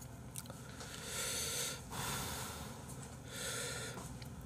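A young man slurps noodles noisily.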